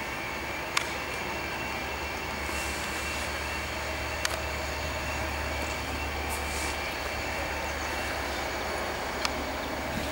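A diesel locomotive rumbles steadily as it approaches.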